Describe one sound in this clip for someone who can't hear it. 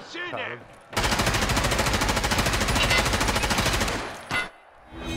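Rapid gunfire rattles in a fast, steady burst.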